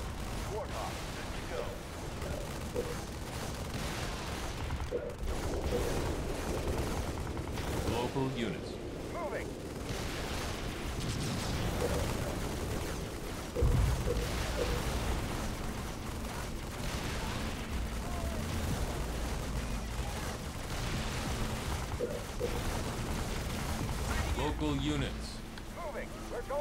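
Gunfire and explosions rumble steadily.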